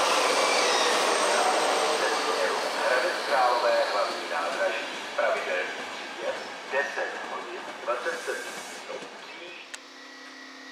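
A train rumbles past, its wheels clattering rhythmically over the rail joints.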